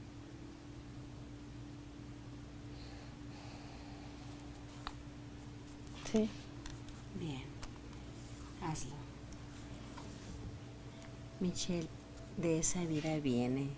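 A woman breathes slowly and softly in her sleep.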